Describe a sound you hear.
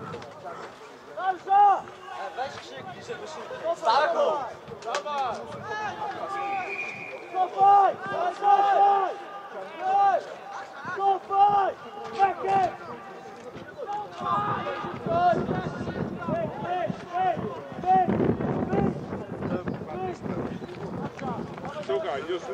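Young men shout across an open field.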